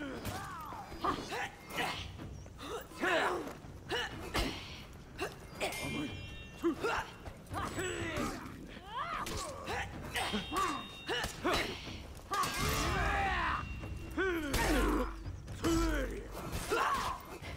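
Metal swords clash and clang repeatedly.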